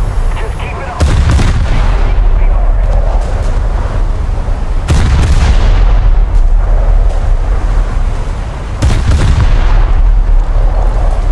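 Heavy guns fire in loud booms that rumble away.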